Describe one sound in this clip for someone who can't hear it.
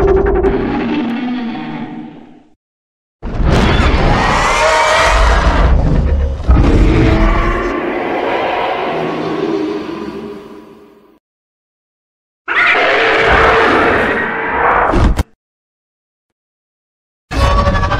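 A huge winged creature lets out loud, screeching roars in several long bursts.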